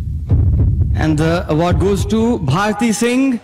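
A woman speaks into a microphone with animation.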